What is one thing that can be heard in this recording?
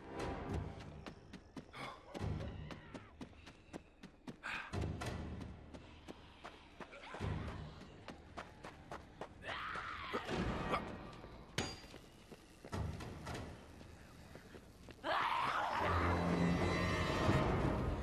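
Blades slash and thud into bodies in quick bursts.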